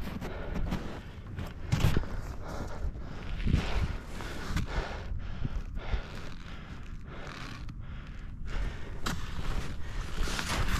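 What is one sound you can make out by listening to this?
A snowboard hisses and scrapes over crusty snow.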